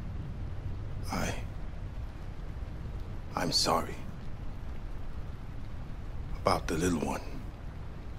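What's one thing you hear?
A young man speaks quietly in short phrases.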